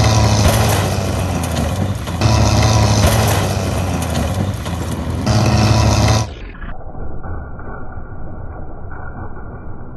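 A caravan crunches and splinters as a tank crushes it.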